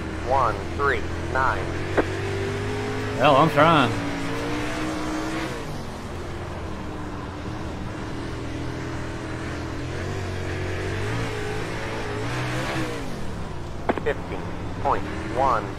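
Race car engines drone and rev steadily.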